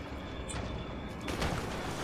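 A man wades through water with splashes.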